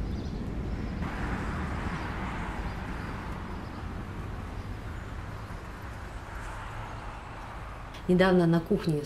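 Traffic hums along a busy road.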